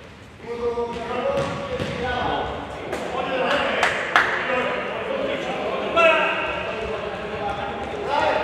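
Men shout to each other across a large echoing indoor hall.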